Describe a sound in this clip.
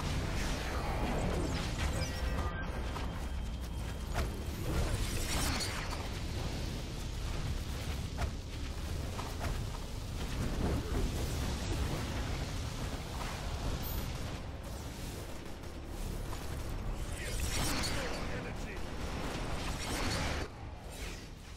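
Game spell effects whoosh and crackle in a busy battle.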